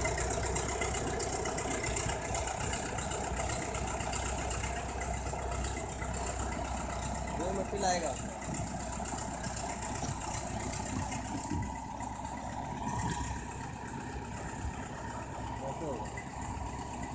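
A bulldozer's diesel engine rumbles steadily nearby.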